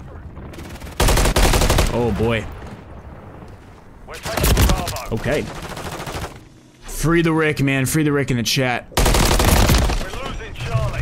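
Rapid gunfire bursts out in short volleys.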